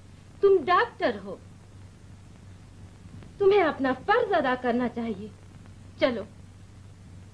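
A woman speaks emotionally, close by.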